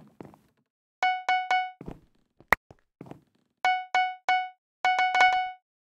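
Short bright chimes ping in quick groups.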